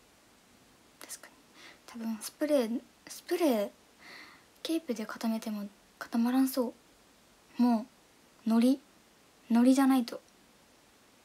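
A young woman speaks softly and close to the microphone, in short bursts.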